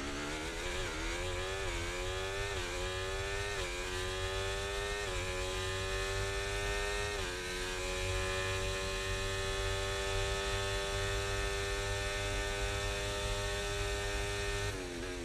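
A racing car engine screams loudly, rising in pitch through quick gear shifts.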